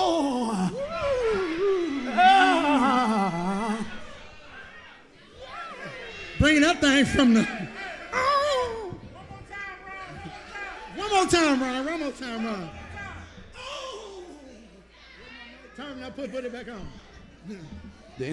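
A man sings loudly into a microphone with a strong voice.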